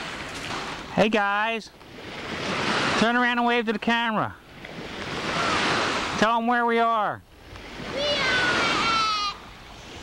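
A young child calls out loudly nearby.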